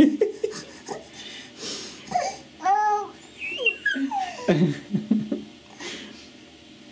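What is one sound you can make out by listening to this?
A baby coos and squeals up close.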